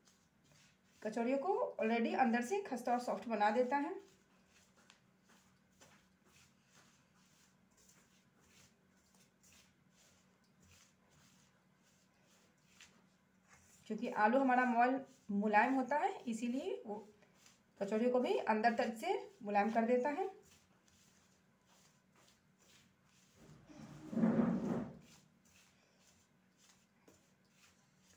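Hands rub and mix dry flour softly.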